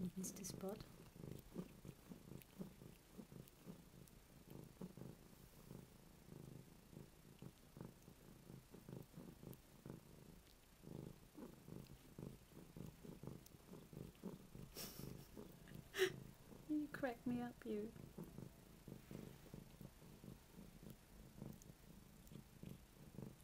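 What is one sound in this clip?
A cat licks and suckles at soft fur.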